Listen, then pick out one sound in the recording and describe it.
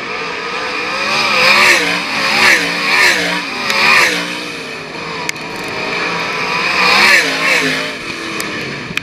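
Several racing cars roar past close by, one after another, their engines rising and falling in pitch.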